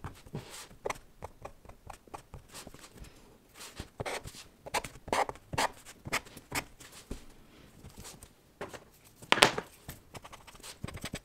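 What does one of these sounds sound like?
A pen scratches and taps quickly across paper, close by.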